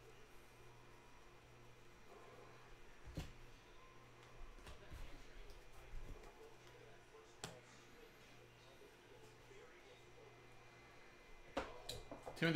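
Trading cards flick and rustle in a person's hands.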